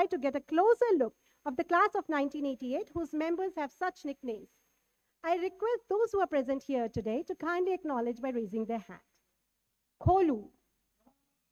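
A woman speaks animatedly through a microphone.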